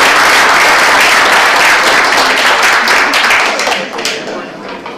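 An audience applauds loudly in a large room.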